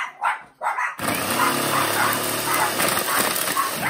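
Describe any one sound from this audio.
A food processor motor whirs steadily.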